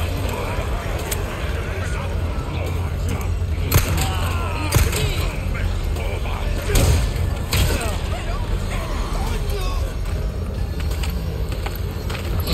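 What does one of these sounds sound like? Men shout and groan in agitation nearby.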